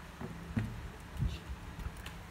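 A finger taps a laptop key.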